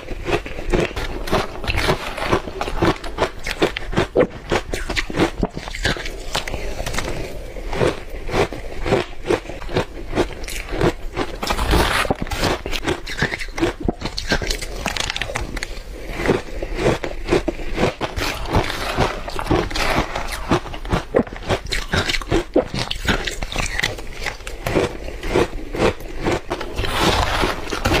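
A metal spoon scrapes against a plastic bowl.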